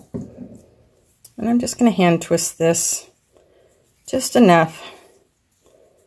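Fingers softly rub and twist fibres together.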